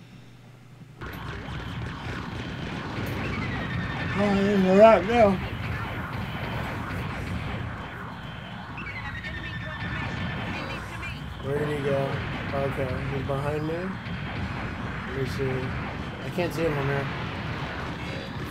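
A giant robot's thrusters roar steadily.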